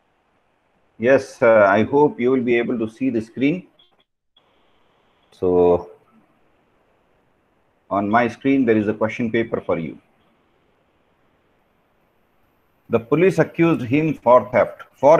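An elderly man speaks calmly, heard through an online call.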